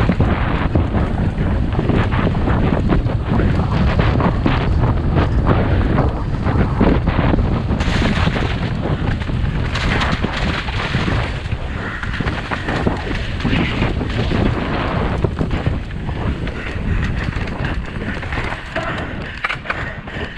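Wind rushes loudly past a bicycle rider.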